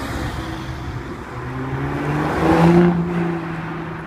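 A sports car engine roars loudly as the car drives close past.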